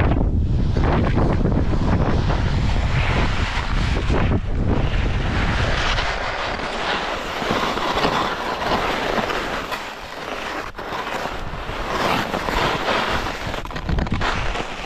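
Wind rushes past, loud and rumbling, then easing.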